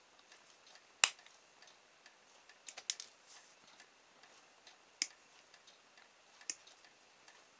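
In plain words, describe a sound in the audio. Small cutters snip sharply at a plastic gear.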